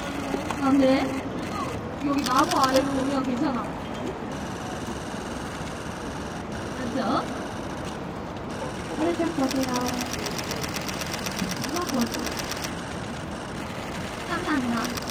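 A young woman speaks with animation through a microphone and loudspeakers outdoors.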